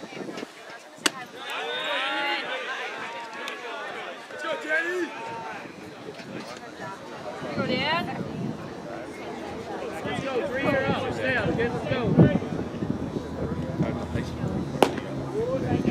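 A baseball bat cracks against a ball.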